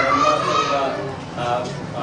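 A middle-aged man speaks up loudly from a seated crowd.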